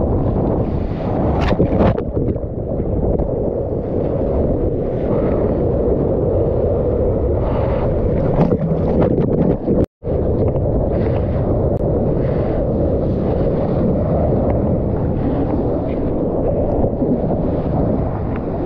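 Water rushes and splashes loudly close by as a wave breaks.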